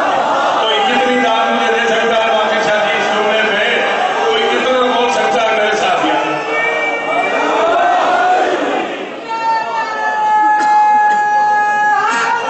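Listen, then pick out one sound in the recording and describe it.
A man speaks passionately into a microphone, his voice amplified and echoing.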